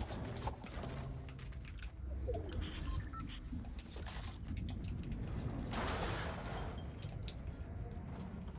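Footsteps patter quickly in a video game.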